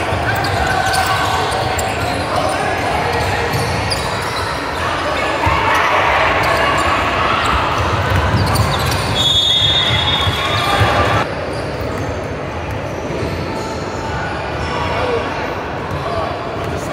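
Young players call out to each other across the gym.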